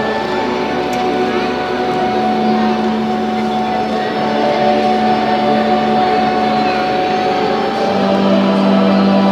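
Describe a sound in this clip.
A large choir sings with long, sustained notes in an echoing hall.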